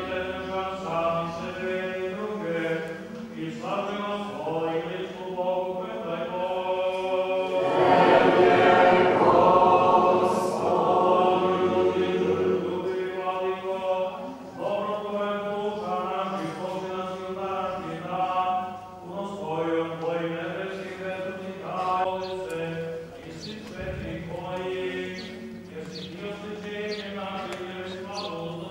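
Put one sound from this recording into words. A choir of men and women sings a slow hymn in a large echoing hall.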